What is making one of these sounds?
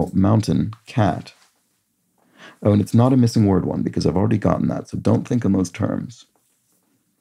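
A young man talks calmly and thoughtfully, close to the microphone.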